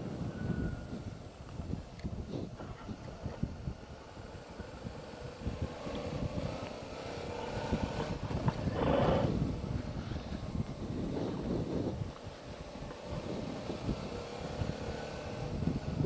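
Tyres crunch and rumble over gravel.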